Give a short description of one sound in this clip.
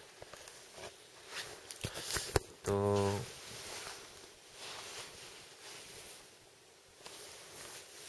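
Fabric rustles against a phone microphone.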